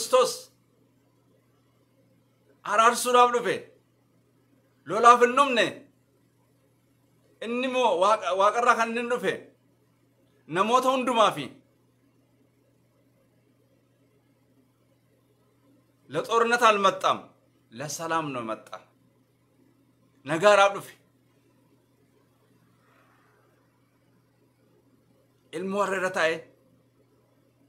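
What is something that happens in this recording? A man speaks calmly and close by, in short phrases with long pauses.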